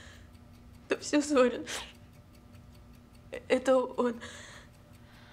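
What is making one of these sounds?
A young woman sobs and speaks tearfully.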